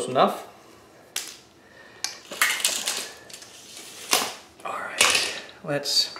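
A tape measure snaps back as it retracts.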